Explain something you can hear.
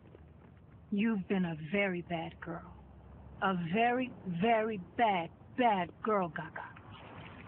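A young woman speaks nearby with attitude.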